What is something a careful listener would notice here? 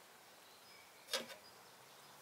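A metal fork clatters against a metal pan.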